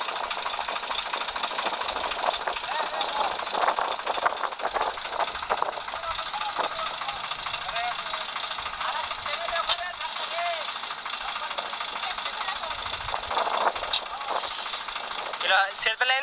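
Several men talk and call out nearby outdoors.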